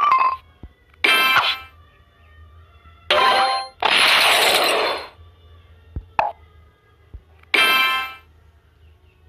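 Bright game chimes ring out in short bursts as blocks pop.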